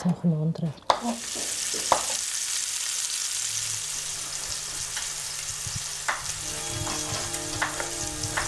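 Meat sizzles in a hot frying pan.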